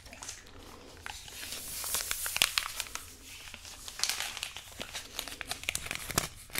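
A woman crinkles and taps a small plastic object near a microphone.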